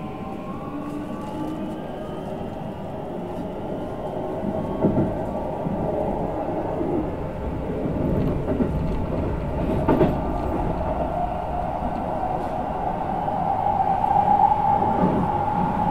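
A train rumbles steadily along the tracks with a whining motor.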